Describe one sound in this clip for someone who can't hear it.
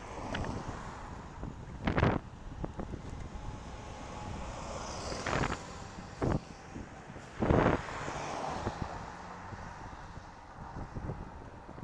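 Wind rushes and buffets in gusts outdoors.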